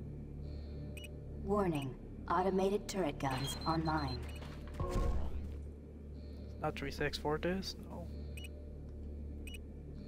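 Keypad buttons beep in short electronic tones.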